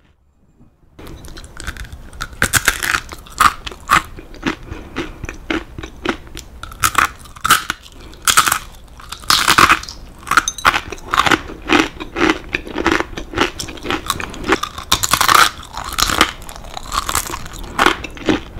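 Crispy crackers crunch loudly in close-up as someone bites and chews.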